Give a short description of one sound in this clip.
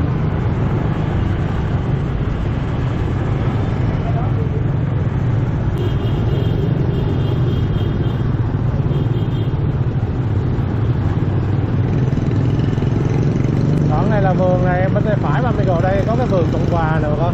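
Traffic of many motorbikes rumbles all around.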